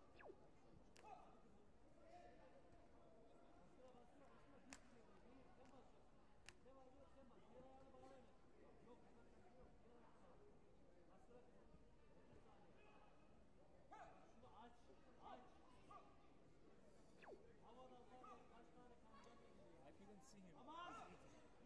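Kicks thud against body protectors in a large echoing hall.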